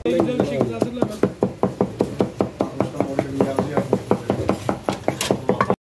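A knife chops rapidly on a cutting board.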